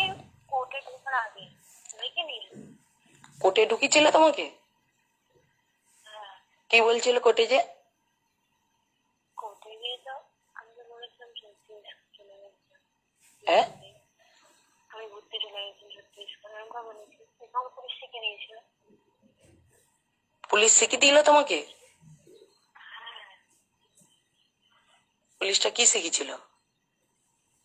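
A woman speaks close by, calmly and in short bursts.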